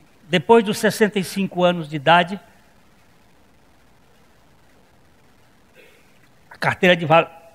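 A middle-aged man speaks into a microphone in an echoing hall.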